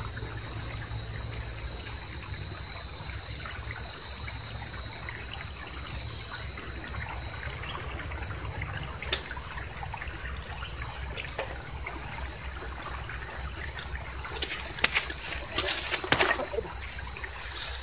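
Footsteps crunch on a dirt path close by.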